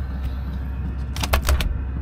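Foil insulation crinkles as a hand presses it flat.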